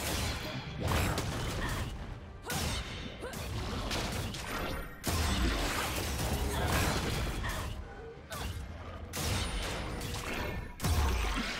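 Fantasy battle sound effects clash and boom in quick bursts.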